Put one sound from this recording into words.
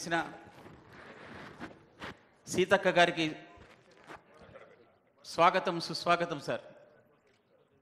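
A man speaks loudly over a loudspeaker in a large hall.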